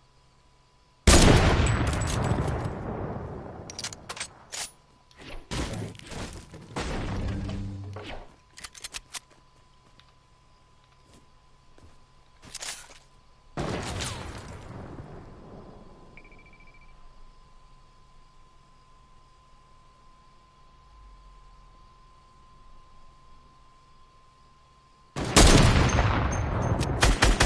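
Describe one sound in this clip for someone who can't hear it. A rifle fires a loud shot that echoes away.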